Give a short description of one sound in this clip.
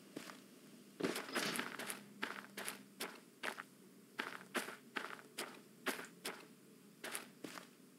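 Footsteps crunch on gravel beside the tracks.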